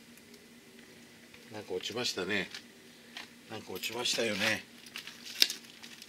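Potting soil crunches softly as it is pressed down.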